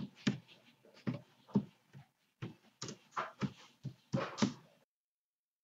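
Keyboard keys click in quick bursts of typing.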